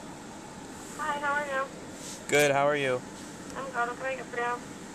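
A voice speaks through a crackly loudspeaker.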